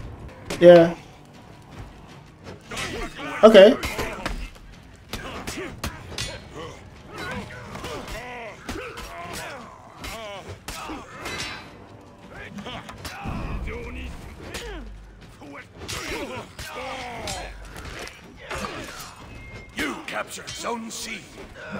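Swords clang and clash in a fight.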